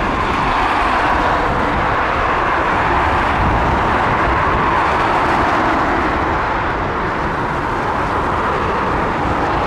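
A jet airliner's engines roar loudly overhead with a steady rumbling noise.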